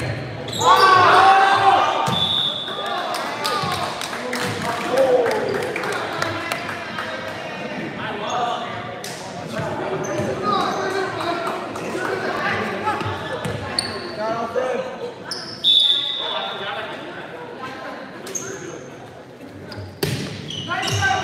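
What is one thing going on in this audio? A crowd of young spectators cheers and chatters, echoing in a large hall.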